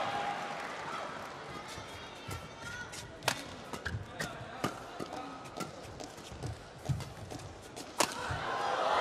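Rackets smack a shuttlecock back and forth in sharp, quick hits.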